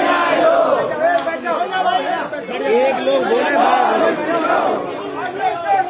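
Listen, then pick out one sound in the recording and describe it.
A large crowd shouts and chants outdoors.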